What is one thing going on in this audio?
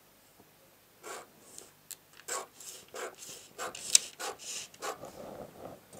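Scissors snip through paper in short cuts.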